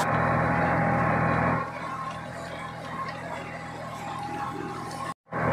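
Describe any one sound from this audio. A tractor engine runs with a steady, loud drone close by.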